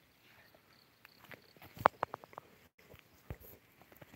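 Dogs' paws scrape and patter on a paved path.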